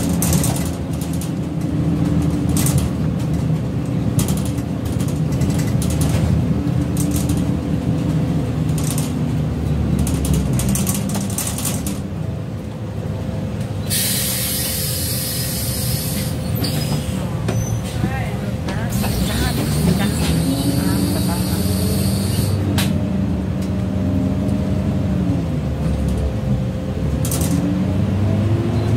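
A bus engine hums and rumbles steadily from inside, rising and falling in pitch as it speeds up and slows down.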